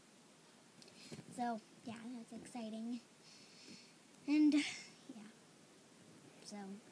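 A young girl talks and shouts playfully close to the microphone.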